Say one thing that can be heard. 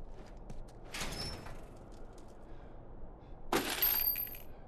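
A metal door scrapes open.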